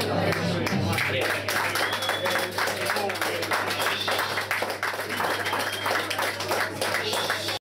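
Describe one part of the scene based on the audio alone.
An acoustic guitar is strummed fast and hard.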